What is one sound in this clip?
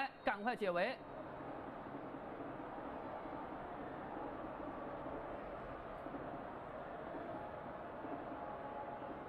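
A stadium crowd murmurs steadily in a large open space.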